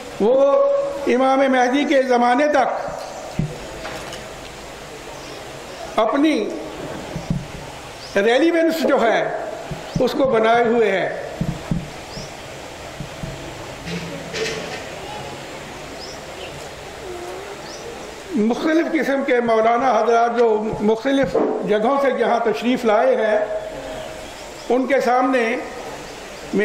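An older man speaks into a microphone with emphasis, in bursts separated by pauses, heard through a loudspeaker outdoors.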